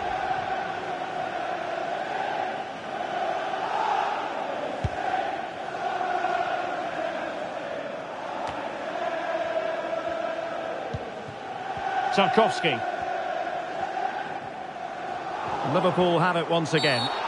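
A large stadium crowd chants and roars steadily.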